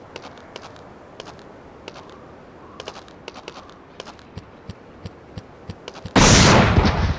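Footsteps patter softly on the ground.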